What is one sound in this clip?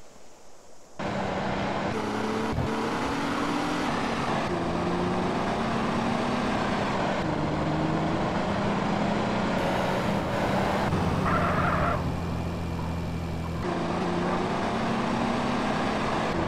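A vehicle engine hums and revs steadily.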